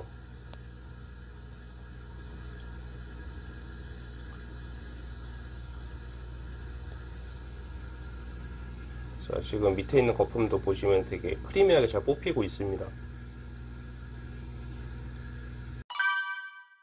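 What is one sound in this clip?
Water fizzes and bubbles steadily.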